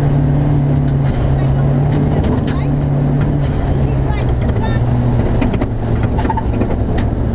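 A rally car engine roars and revs loudly from inside the cabin.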